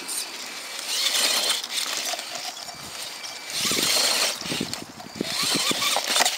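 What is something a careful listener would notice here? A small electric motor whines in surges as a toy truck climbs over rocks.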